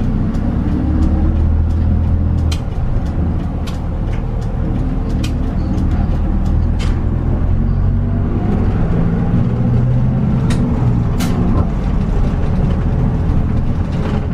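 A diesel city bus engine drones from inside as the bus drives and turns.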